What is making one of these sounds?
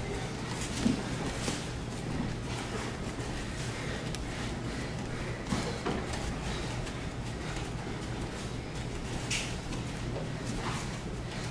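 Bare feet shuffle and slap on a mat.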